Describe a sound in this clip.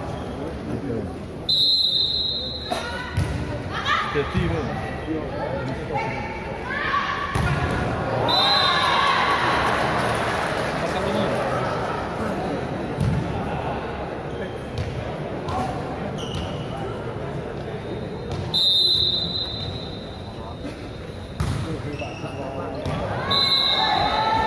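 A large crowd cheers and chatters in an echoing indoor hall.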